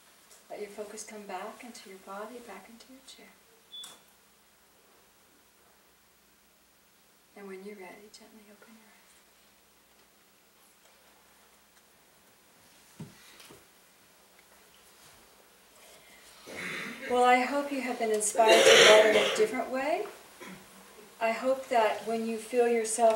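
A middle-aged woman speaks calmly into a microphone, pausing between phrases.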